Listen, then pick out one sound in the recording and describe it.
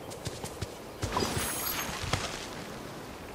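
A magical shimmering chime rings out.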